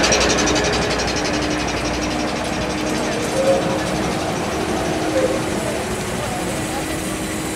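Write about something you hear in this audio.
A trolleybus hums as it rolls slowly past close by.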